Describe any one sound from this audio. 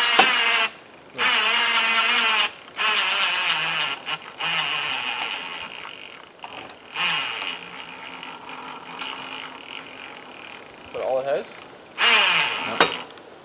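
Timber creaks and groans loudly under strain.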